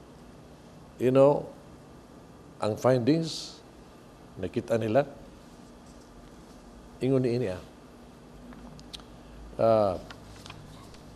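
An elderly man preaches slowly into a microphone, in short phrases with pauses.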